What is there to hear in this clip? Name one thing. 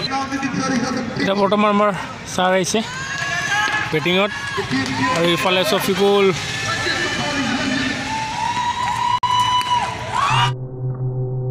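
Spectators shout and cheer outdoors.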